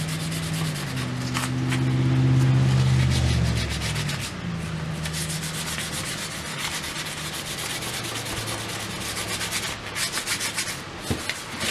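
A small hammer taps rapidly and steadily on leather.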